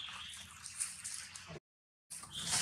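Dry leaves rustle and crunch under a monkey's feet.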